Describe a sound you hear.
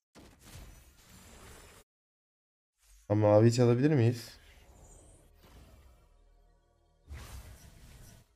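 Magic blasts whoosh and crackle in short bursts.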